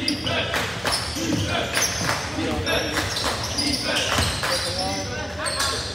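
Players and spectators call out and chatter in a large echoing gym.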